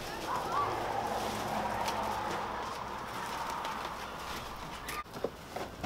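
Plastic garbage bags rustle.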